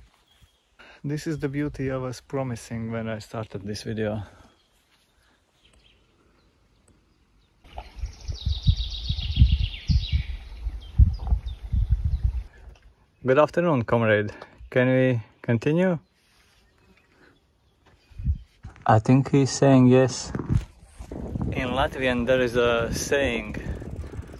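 A man talks casually and close by, outdoors.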